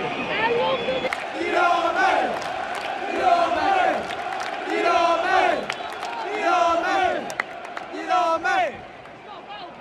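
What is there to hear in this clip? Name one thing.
A large crowd claps in rhythm.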